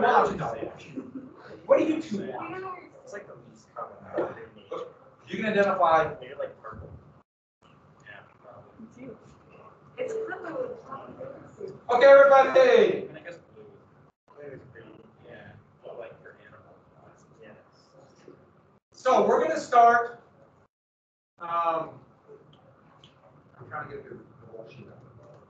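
A man speaks calmly through a microphone, as if lecturing in an online call.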